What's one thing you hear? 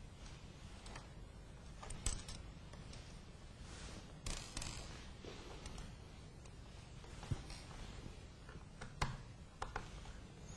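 Metal parts click and tap.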